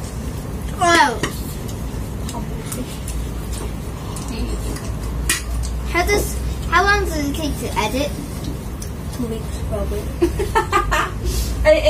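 Spoons and chopsticks clink against bowls and plates.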